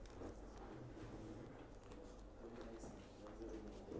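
Pages rustle as a book is leafed through.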